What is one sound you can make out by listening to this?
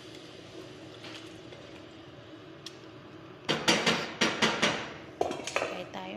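A wooden spoon stirs and scrapes in a pot.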